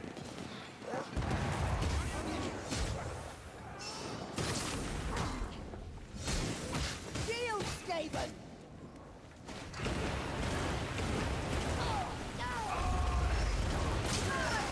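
Heavy blows strike with loud thuds and crashes.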